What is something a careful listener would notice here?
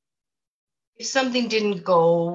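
A second woman answers calmly, heard through an online call.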